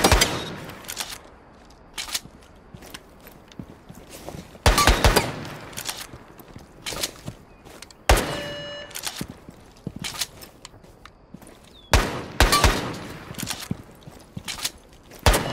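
A pistol fires sharp shots that echo briefly.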